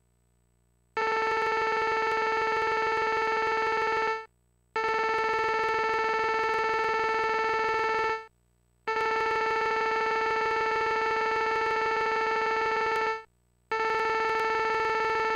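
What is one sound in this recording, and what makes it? Text blips chirp rapidly in steady bursts.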